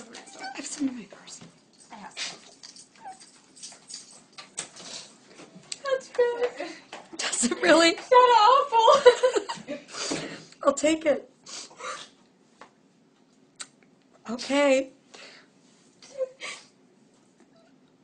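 A young woman sobs and cries emotionally, close by.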